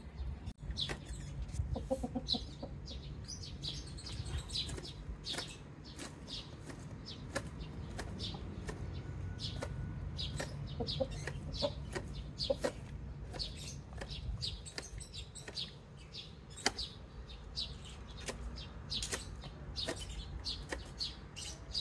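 Chickens scratch and peck in the grass, rustling the plants.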